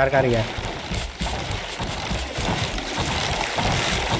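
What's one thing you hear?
A shark splashes through the water.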